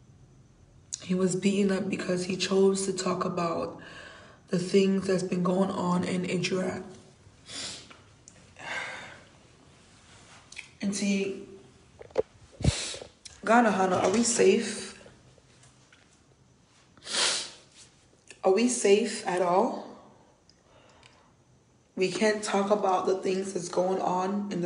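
A young woman talks emotionally close to a phone microphone.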